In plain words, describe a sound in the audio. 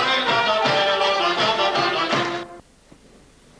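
A band plays lively folk music on flutes and pipes.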